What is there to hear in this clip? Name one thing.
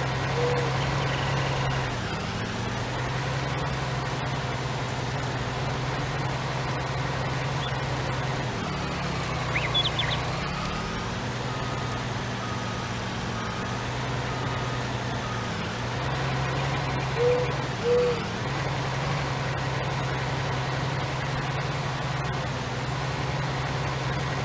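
A heavy harvester engine drones steadily, its pitch dipping and rising as it slows and speeds up.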